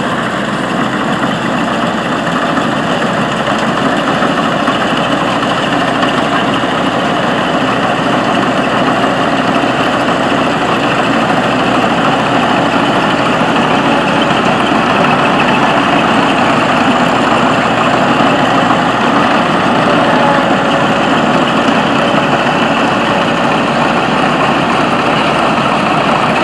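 A combine harvester cuts and threshes dry straw with a rustling clatter.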